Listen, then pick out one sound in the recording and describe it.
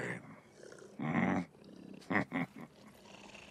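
A man chuckles.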